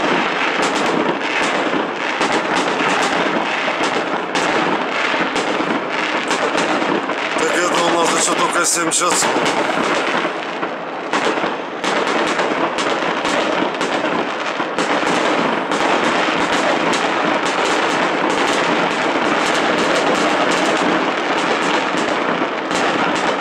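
Fireworks crackle and sizzle as sparks spread.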